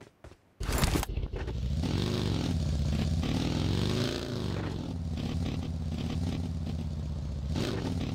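A buggy engine revs and hums as it drives over rough ground.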